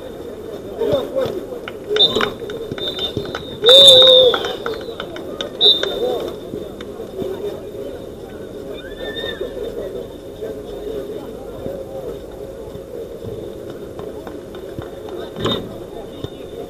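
A football is kicked with dull thuds.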